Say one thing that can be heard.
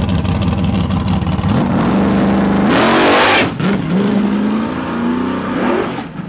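A car engine roars loudly close by and revs through gear changes as the car speeds away.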